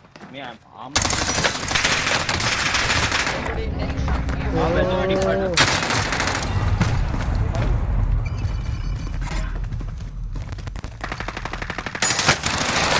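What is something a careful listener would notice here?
Gunfire crackles and booms in rapid bursts.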